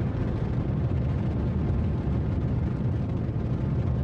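A rocket engine roars steadily as a rocket lifts off.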